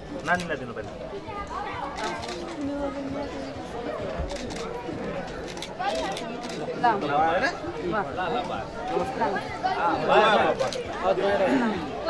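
Several men and women talk over one another in a busy crowd nearby.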